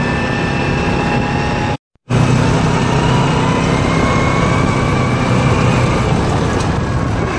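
An engine roars steadily close by.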